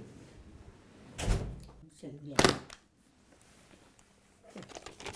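An elderly woman talks calmly, close by.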